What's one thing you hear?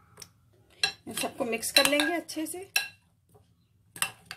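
A spoon stirs onions in a glass bowl.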